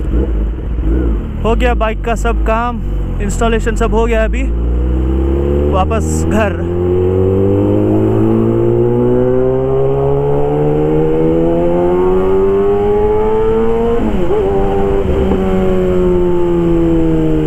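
A motorcycle engine hums close by and climbs in pitch as it speeds up, dropping briefly at a gear change.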